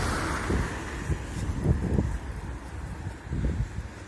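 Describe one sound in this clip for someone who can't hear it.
A van drives away along a wet road.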